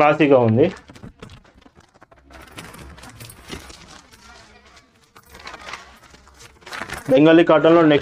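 Fabric rustles as it is unfolded and handled.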